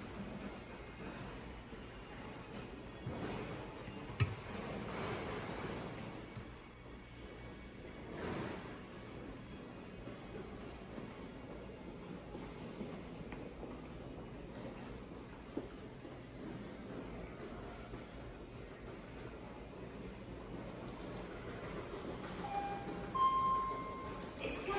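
A quiet low hum fills a large echoing hall.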